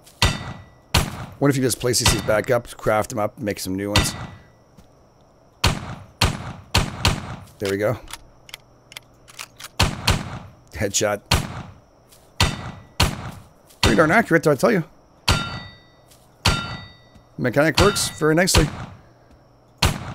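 A gun fires in quick repeated shots.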